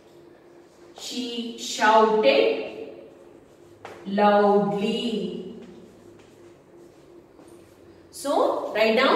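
A woman speaks clearly and with animation, heard up close.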